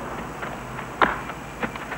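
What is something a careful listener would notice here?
A baseball smacks into a leather glove.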